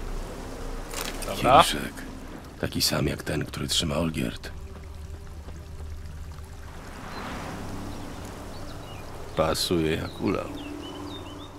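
A man speaks in a low, gravelly voice.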